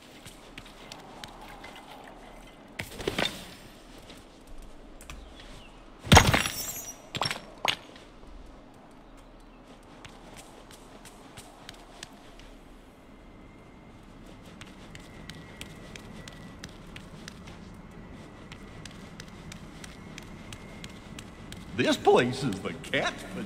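Light footsteps patter on stone.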